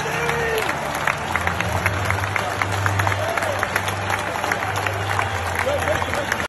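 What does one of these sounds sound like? Spectators clap their hands.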